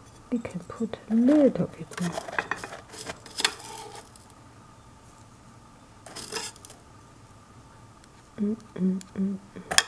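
A metal spoon scrapes and clinks against a tin of loose tea leaves.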